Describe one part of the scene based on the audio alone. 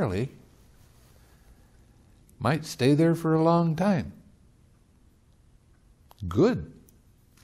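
An elderly man speaks calmly and slowly, close to a microphone, with long pauses.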